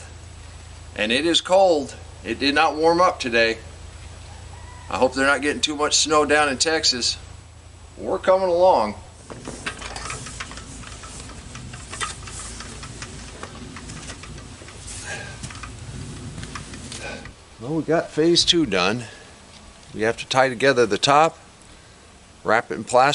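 An elderly man speaks calmly outdoors.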